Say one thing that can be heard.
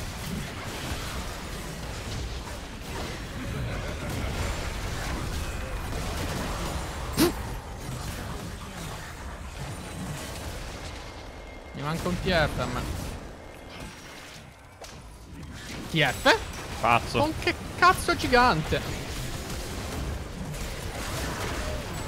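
Game sound effects of spells and blows clash and burst.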